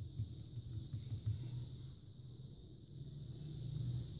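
Hands softly press and fold dough on a table.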